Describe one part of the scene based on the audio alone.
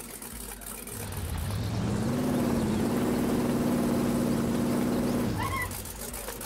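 An off-road vehicle's engine revs up, drones steadily and then cuts off.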